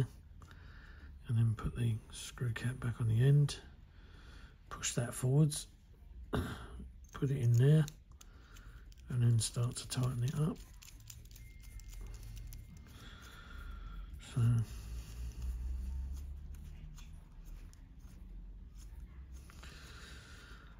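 Small metal parts click and clink softly as they are handled.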